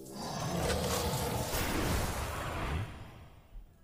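A young woman speaks.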